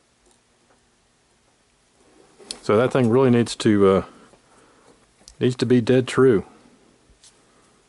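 Metal parts click softly as they are turned by hand.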